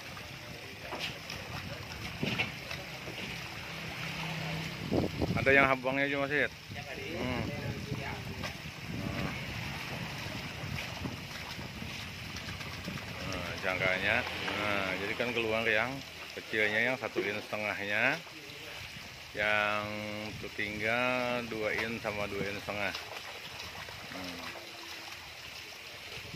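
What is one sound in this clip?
Water splashes as hands scoop and sweep through it.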